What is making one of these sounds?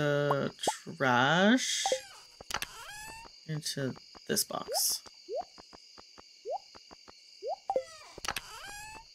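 Short electronic clicks and chirping blips sound from a game.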